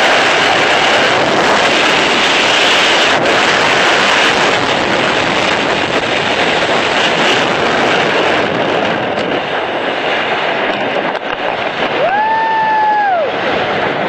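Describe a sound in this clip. Wind roars against the microphone during a skydiving freefall.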